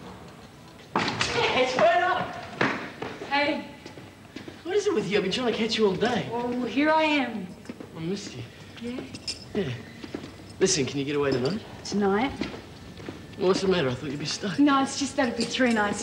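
A young woman talks cheerfully nearby.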